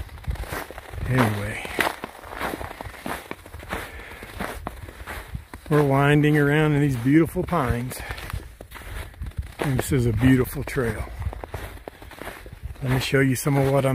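An elderly man talks calmly, close up.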